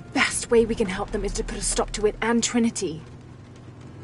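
A young woman speaks with surprise, close by.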